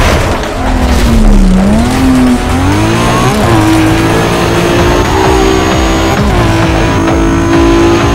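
A car engine roars and revs as a car races at speed.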